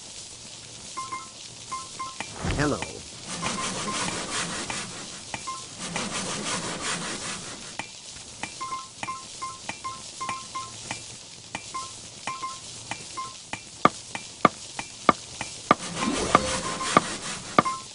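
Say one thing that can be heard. Short bright chimes ring out again and again as items are collected.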